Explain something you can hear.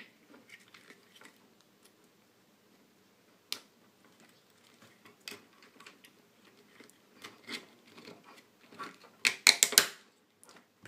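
Hands click and tap on the plastic parts of a small robot.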